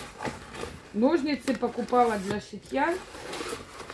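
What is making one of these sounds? Scissors snip through cardboard.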